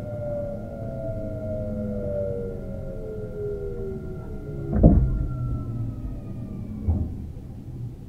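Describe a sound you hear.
An electric train's motor whines and falls in pitch as the train slows.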